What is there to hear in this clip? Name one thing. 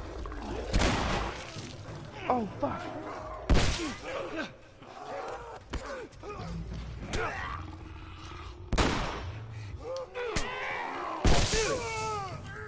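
Gunshots bang loudly with a short ringing echo.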